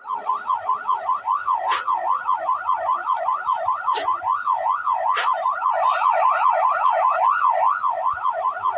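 A police siren wails steadily nearby.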